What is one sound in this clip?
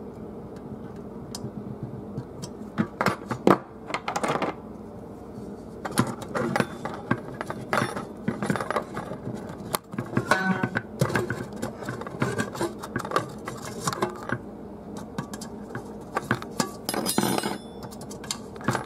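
Thin perforated metal sheets clink and rattle as they are handled.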